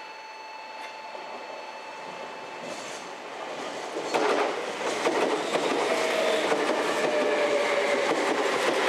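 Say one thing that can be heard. An electric train rolls past close by, its wheels clattering over the rail joints.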